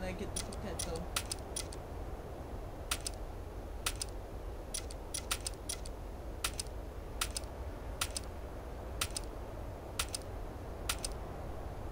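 Menu buttons click sharply, over and over.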